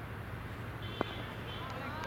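A cricket bat cracks against a ball.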